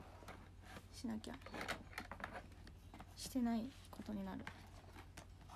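A young woman speaks softly and briefly close to a microphone.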